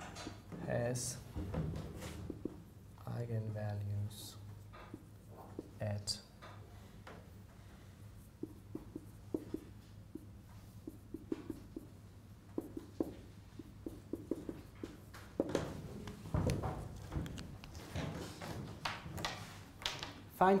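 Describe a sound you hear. A man speaks calmly and clearly to a class in a room with some echo.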